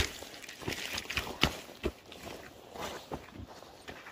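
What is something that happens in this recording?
Boots thud and squelch on wet soil.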